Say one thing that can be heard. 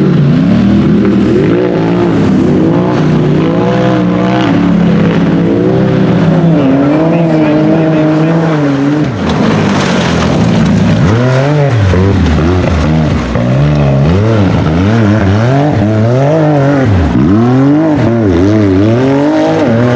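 An off-road buggy engine revs hard and roars, rising and falling in pitch.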